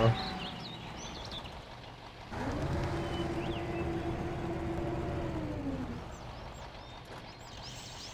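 A heavy truck engine rumbles at idle.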